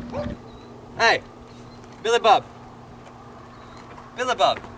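A young man speaks loudly outdoors in short bursts.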